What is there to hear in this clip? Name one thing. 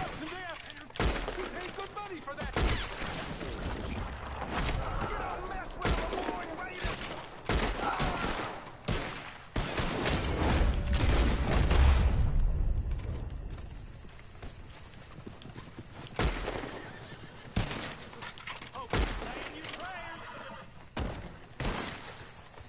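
Rifle shots ring out one after another, sharp and loud.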